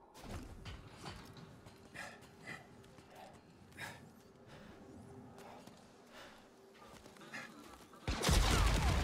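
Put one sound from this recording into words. Hands and boots knock and scrape softly on a climbing mesh.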